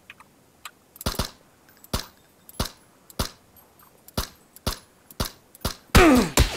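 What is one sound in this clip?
A rifle fires single shots in a steady series, each sharp crack followed by a short echo.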